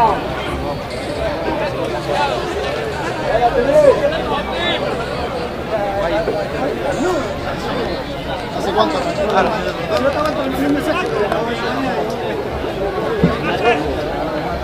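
Spectators talk and call out close by outdoors.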